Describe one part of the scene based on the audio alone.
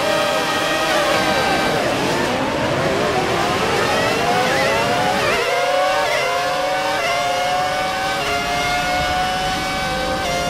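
A racing car engine roars as the car speeds away, climbing in pitch and dropping back at each gear change.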